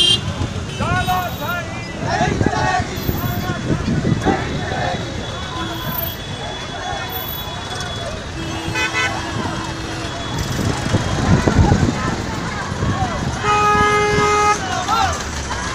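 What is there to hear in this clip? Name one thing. Motorcycle and tractor engines rumble along a road.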